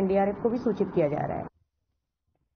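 A woman speaks calmly into microphones.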